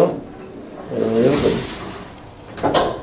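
An elevator door slides shut.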